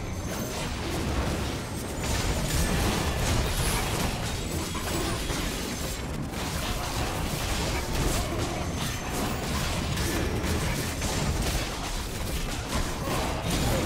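Magical blasts whoosh and crackle in a busy fight.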